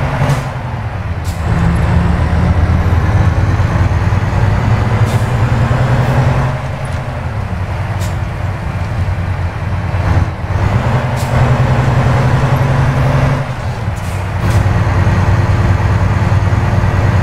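A heavy truck engine drones steadily, dropping briefly as gears change.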